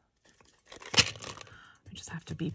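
A small metal tin clicks as hands handle it.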